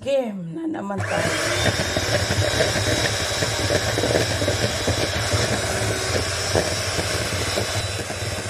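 An electric hand mixer whirs in a plastic bowl.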